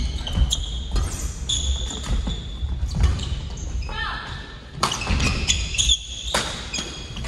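Rackets smack shuttlecocks in a large echoing hall.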